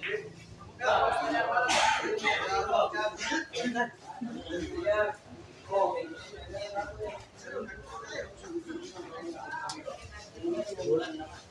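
A crowd of men chatter and call out nearby.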